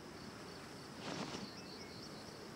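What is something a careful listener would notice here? A sudden whoosh bursts out as a figure leaps into the air.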